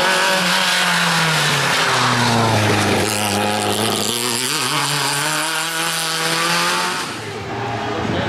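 A rally car engine revs hard and changes pitch as the car speeds by.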